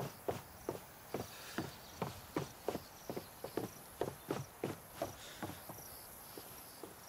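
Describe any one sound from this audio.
Footsteps tap evenly on a hard floor.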